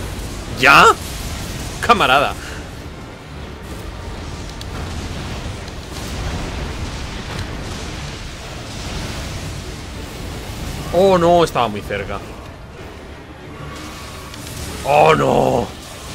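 A young man talks with animation close to a microphone, in short outbursts.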